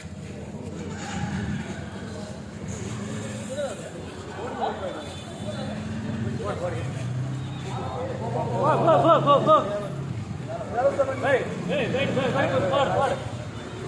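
Young men shout and argue excitedly nearby.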